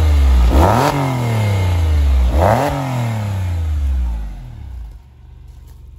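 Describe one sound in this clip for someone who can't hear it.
A car engine revs loudly twice.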